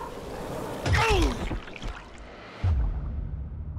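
A heavy body thuds hard into the ground.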